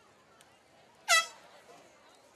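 A referee's whistle blows a short sharp blast.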